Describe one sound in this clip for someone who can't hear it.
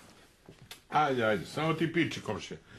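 An older man speaks in a deep voice close by.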